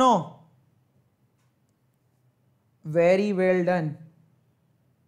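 A young man speaks in short phrases, heard close through a microphone.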